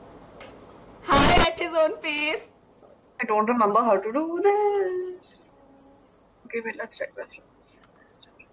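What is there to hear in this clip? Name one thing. A young woman laughs and talks with animation over an online call.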